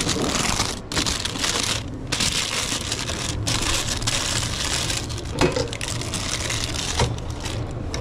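Paper crinkles and rustles.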